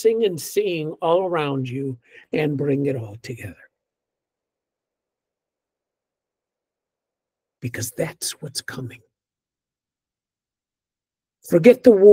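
An older man speaks calmly through an online call, with pauses.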